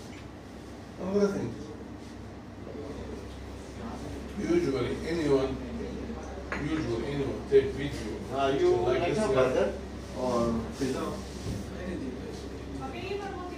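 Men talk calmly in a quiet room.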